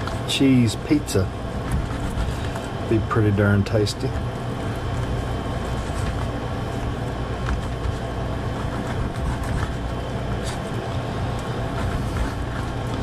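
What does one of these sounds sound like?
A knife cuts meat against a plate.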